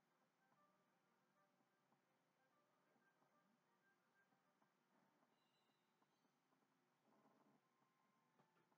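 Video game music plays quietly through a television speaker.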